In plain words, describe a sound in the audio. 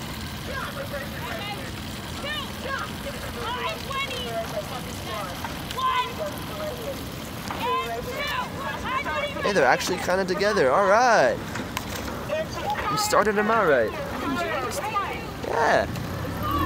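A young woman shouts commands across open water.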